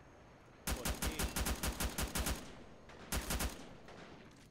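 A machine gun fires rapid bursts close by.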